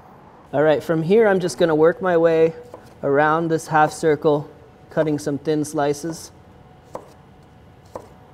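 A knife chops through a cucumber onto a wooden board.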